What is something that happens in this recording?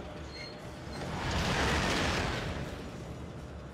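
An airship whooshes past close by.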